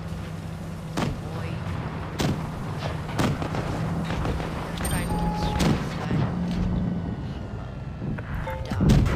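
Tank guns fire with sharp booms.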